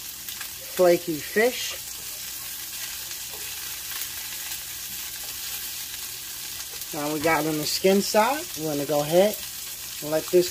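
Fish sizzles and crackles steadily in hot oil.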